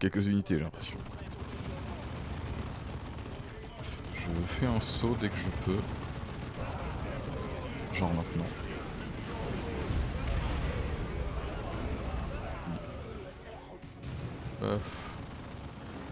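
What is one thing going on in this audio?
Gunfire and explosions rattle in a loud battle.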